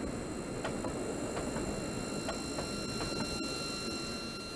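A double-stack container freight train rumbles past on the rails.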